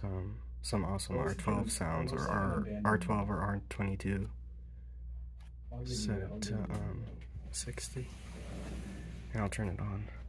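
A thermostat dial clicks as it is turned.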